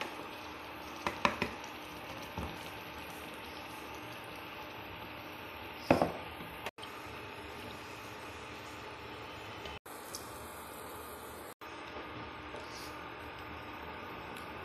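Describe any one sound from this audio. A spoon scrapes and knocks against a pan.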